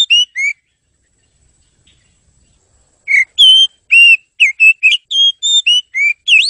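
A songbird sings loud, clear whistling notes close by.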